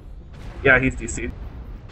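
Laser weapons fire in short bursts.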